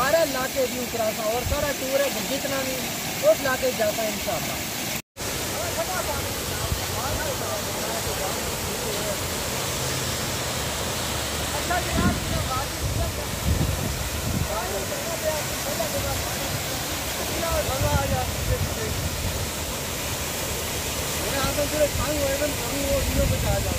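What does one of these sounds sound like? A waterfall rushes and splashes steadily nearby.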